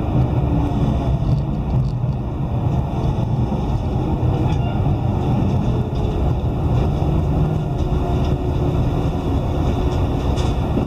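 A train rumbles steadily as it rolls slowly into a station.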